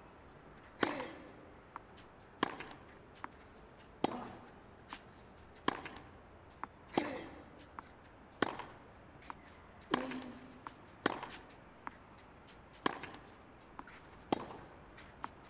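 Tennis balls are struck sharply back and forth in a rally.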